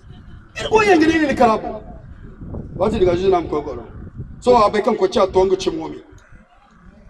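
A man speaks loudly into a microphone in bursts, with pauses between.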